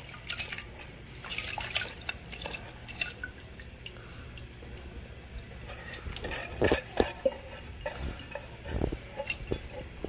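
Water splashes as lentils drop into a pot.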